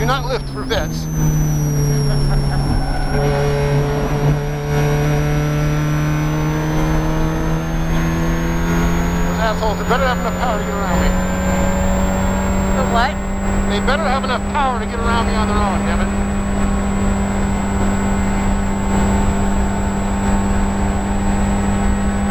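The four-cylinder engine of a Mazda Miata race car shifts up and accelerates at full throttle, heard from inside the cockpit.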